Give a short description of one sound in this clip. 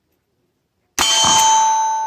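A gunshot cracks outdoors.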